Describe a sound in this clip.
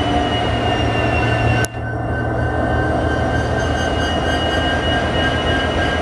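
An electric locomotive rolls slowly into a station, pulling a passenger train.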